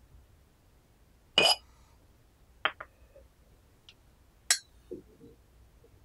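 A clay lid clinks against a teapot.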